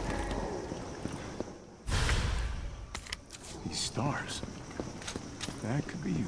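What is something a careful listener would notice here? Footsteps scrape on a stone floor.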